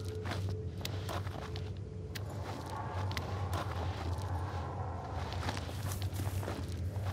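Footsteps scuff and crunch on rocky ground.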